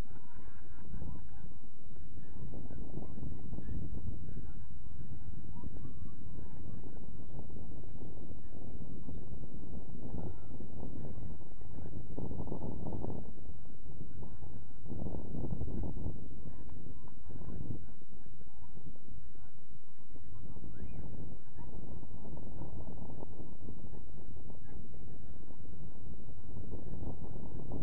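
Wind blusters loudly outdoors.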